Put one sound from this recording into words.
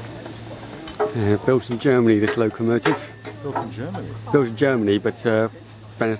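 A man talks animatedly close by.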